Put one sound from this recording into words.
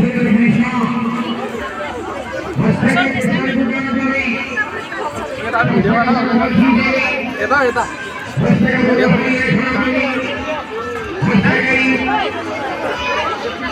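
A crowd of people chatters all around outdoors.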